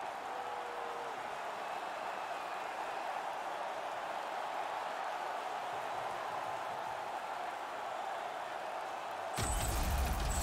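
A large arena crowd roars steadily.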